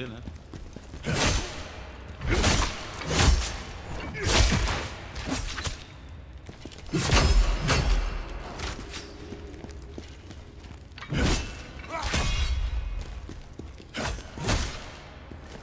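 Weapons strike and slash with heavy thuds, again and again.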